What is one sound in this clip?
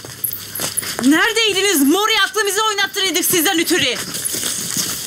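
A young woman shouts loudly and urgently, close by.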